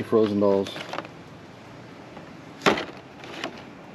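A plastic-windowed toy box is set down onto a plastic lid.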